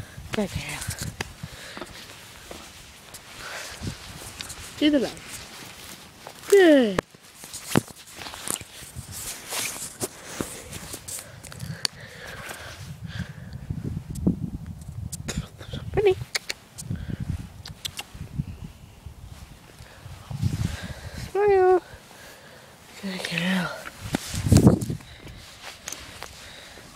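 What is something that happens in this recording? Footsteps crunch slowly on dry dirt and grass.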